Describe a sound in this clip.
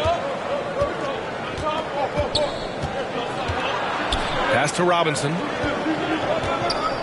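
A crowd murmurs throughout in a large arena.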